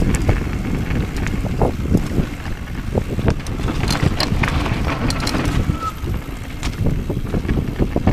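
A mountain bike's frame and chain clatter over bumps.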